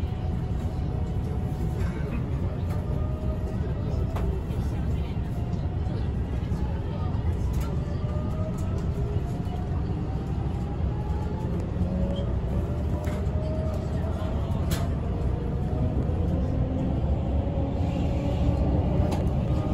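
Train wheels squeal and click over the rails.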